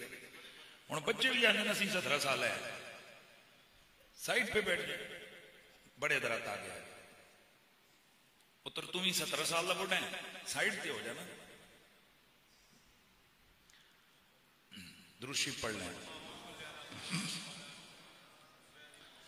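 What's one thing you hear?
A middle-aged man speaks forcefully into a microphone, heard through a loudspeaker with echo, in bursts with pauses.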